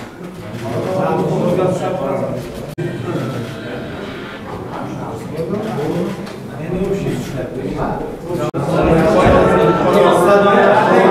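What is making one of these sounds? A crowd of men chatter and talk over one another in a large room.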